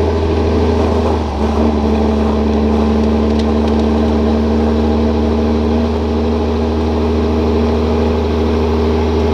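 A tractor engine drones loudly and steadily as it drives closer.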